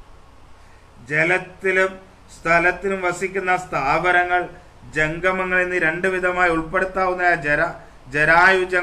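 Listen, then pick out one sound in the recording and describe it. A man chants in a steady, sing-song voice close to a microphone.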